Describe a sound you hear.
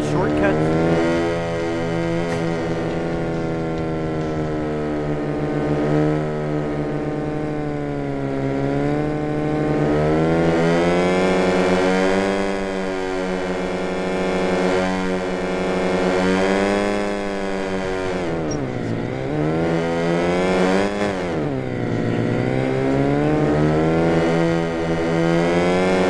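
A car engine hums steadily and revs up and down as the car drives along.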